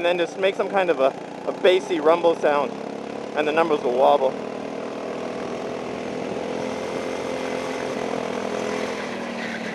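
A small kart engine drones steadily close by.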